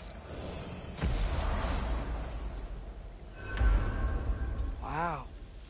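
A loud magical rush whooshes and rumbles.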